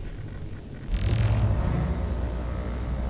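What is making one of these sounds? A handheld scanner fires with a sudden electronic whoosh.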